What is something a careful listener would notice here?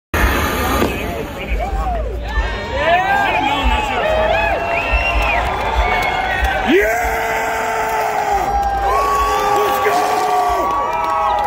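A band plays loud live music through large loudspeakers outdoors.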